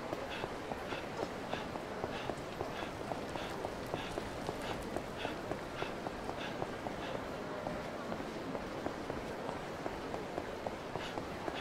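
Running footsteps slap quickly on paving stones.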